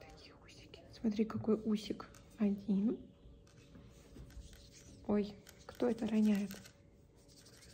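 A young woman speaks softly and gently, close by.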